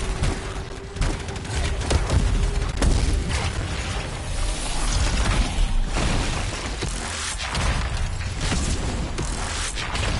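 Energy blasts crackle and boom in rapid bursts.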